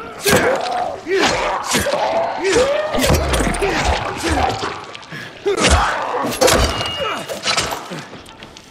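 Heavy wet blows hack into flesh again and again.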